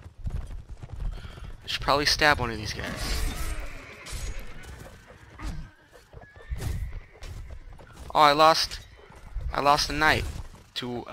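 Horses' hooves thud at a gallop over grass.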